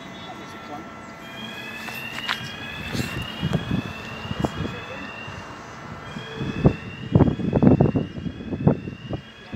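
A level crossing alarm sounds with a repeating warbling tone.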